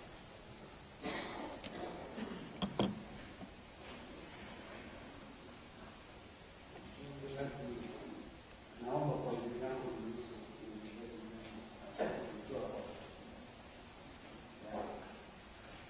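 A man speaks quietly and more distantly into a table microphone.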